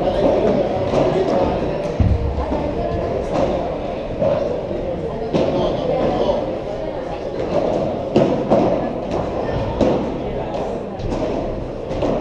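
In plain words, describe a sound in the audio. A ball bounces on a court.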